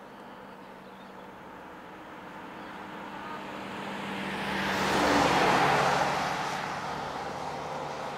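A camper van drives past close by, its engine rising to a roar and then fading.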